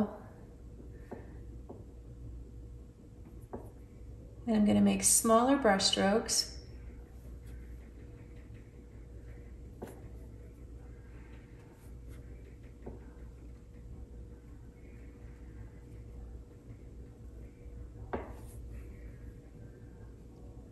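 A paintbrush softly brushes and dabs on paper.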